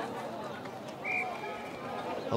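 An umpire blows a short, shrill whistle.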